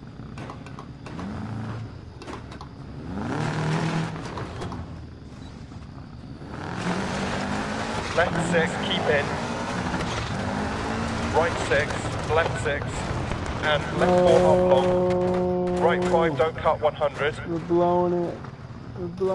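A rally car engine revs up and down.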